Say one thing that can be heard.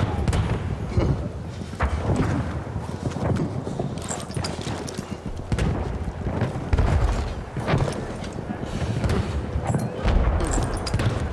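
Wood and metal clatter as a rifle is handled.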